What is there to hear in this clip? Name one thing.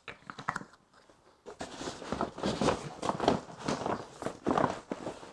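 Boat floor panels knock and rustle under a man's hands.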